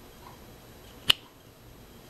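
A plug clicks into place.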